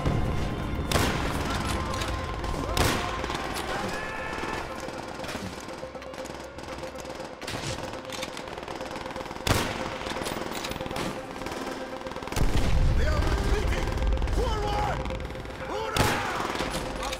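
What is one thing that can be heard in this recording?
A rifle fires sharp, loud shots several times, with a short echo after each.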